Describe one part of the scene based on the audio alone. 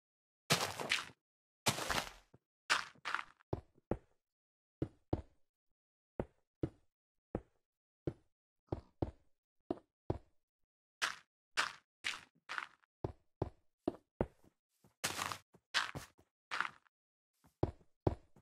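Dirt crunches in short bursts as it is dug away.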